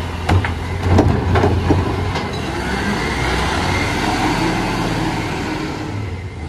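A garbage truck engine rumbles and idles loudly nearby.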